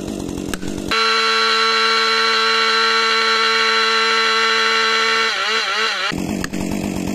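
A chainsaw runs at a steady high roar.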